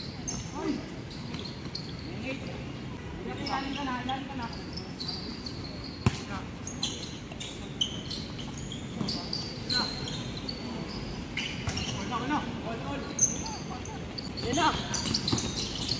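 Young men shout and call out to each other during a basketball game outdoors.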